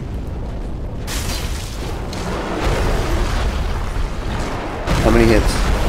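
A huge beast growls and roars.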